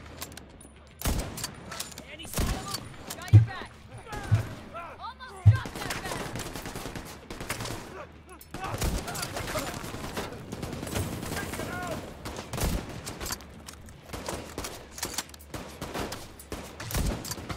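Gunfire cracks in sharp bursts.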